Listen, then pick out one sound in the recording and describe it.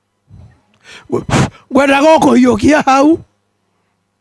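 An elderly man speaks loudly into a microphone.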